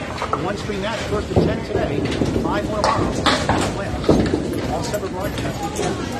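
A bowling ball rolls down a wooden lane with a low rumble.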